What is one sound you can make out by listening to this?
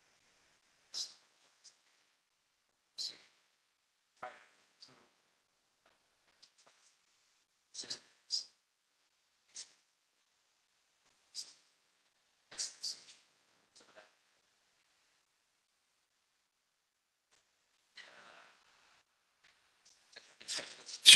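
An older man speaks with animation through a microphone, in short broken snatches.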